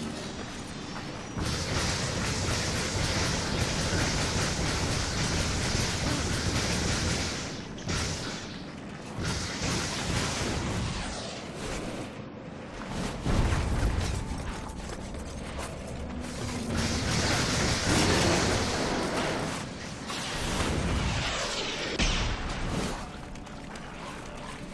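A man talks with animation into a nearby microphone.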